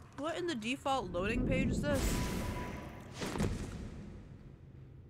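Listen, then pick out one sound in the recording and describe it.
A loud magical blast roars and fades.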